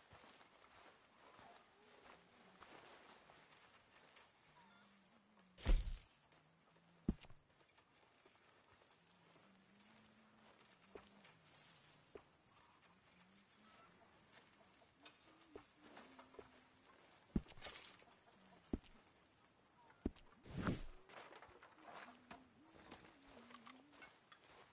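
Footsteps crunch softly on grass.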